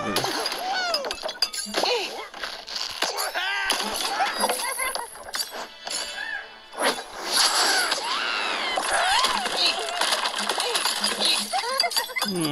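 Blocks of wood and glass crash and shatter as a structure collapses.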